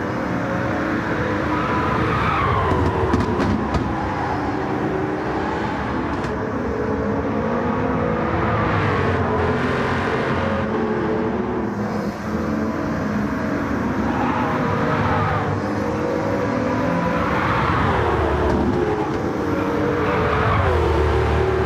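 A race car engine roars at high revs, its pitch climbing and dropping as it shifts gears.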